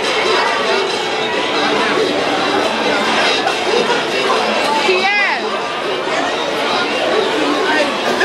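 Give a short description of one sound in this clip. A crowd of teenagers chatters and calls out in a large echoing room.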